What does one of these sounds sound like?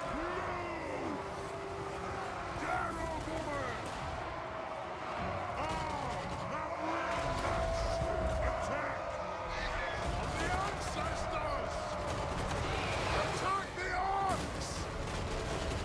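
Battle noise of clashing weapons rumbles on.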